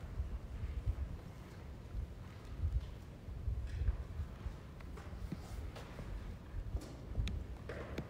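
Footsteps pad softly across a carpeted floor.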